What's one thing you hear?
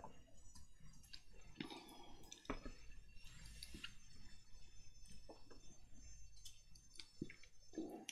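Paper rustles softly under fingers.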